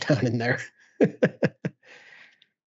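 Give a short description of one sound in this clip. A young man laughs over a microphone in an online call.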